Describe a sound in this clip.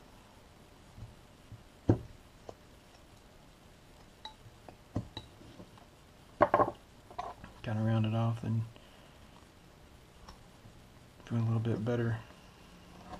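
A knife scrapes and shaves wood in short strokes.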